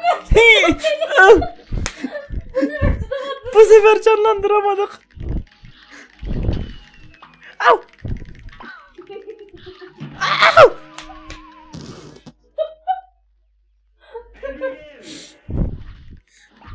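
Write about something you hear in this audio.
A man laughs close to a microphone.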